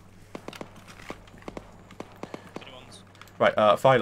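Footsteps crunch on dry leaves.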